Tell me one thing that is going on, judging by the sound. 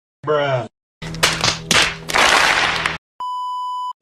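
A large crowd claps and cheers.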